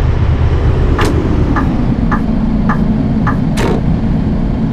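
A bus indicator ticks in a steady rhythm.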